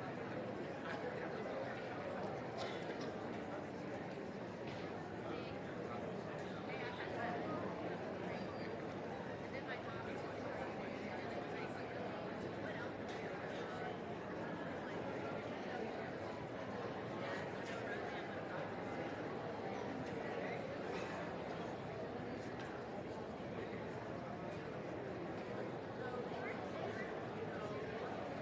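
A crowd murmurs steadily in a large indoor hall.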